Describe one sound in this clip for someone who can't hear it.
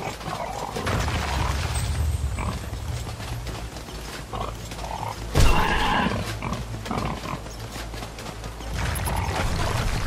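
A beast snarls and growls.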